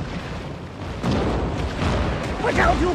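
A cannon fires with a booming shot.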